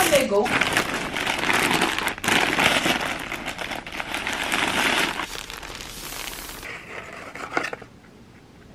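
Plastic wrapping crinkles and rustles up close.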